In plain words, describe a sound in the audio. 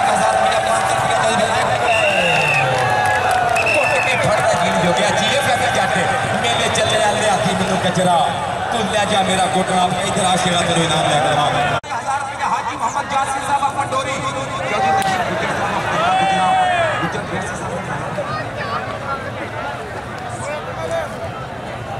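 A large outdoor crowd cheers and chatters loudly.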